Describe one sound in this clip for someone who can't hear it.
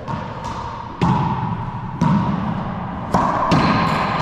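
A racquetball smacks off racquets and walls, echoing around an enclosed court.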